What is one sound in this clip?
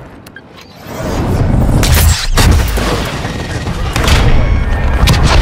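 A helicopter explodes with a loud roar.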